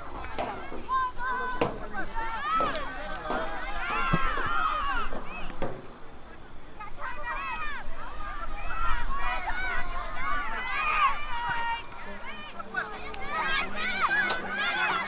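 Young spectators nearby shout and cheer outdoors.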